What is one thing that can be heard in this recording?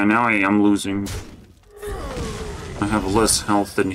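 A magical spell effect whooshes and shimmers.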